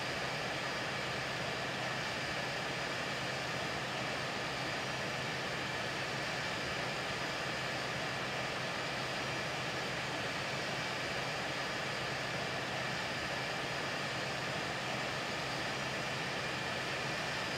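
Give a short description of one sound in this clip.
The turbofan engines of a twin-engine jet airliner roar steadily in flight.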